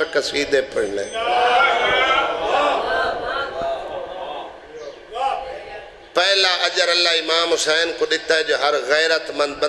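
A man speaks passionately into a microphone, heard through loudspeakers.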